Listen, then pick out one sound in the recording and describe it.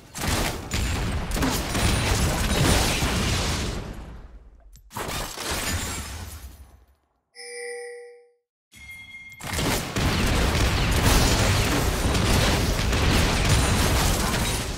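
Magic spells and weapon blows clash in a video game battle.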